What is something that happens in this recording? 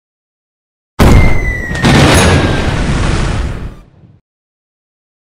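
A game explosion booms with a rumbling blast.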